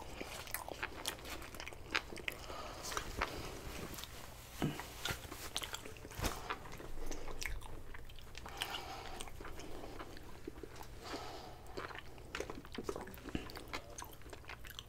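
A man chews food wetly and loudly, close to a microphone.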